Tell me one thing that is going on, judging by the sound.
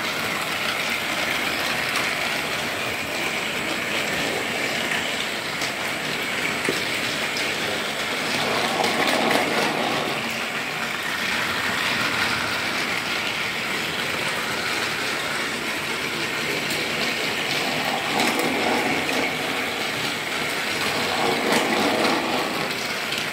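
A small battery toy train whirs and rattles steadily along a plastic track.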